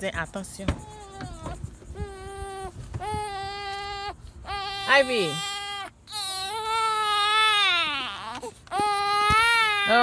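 A baby cries loudly and wails nearby.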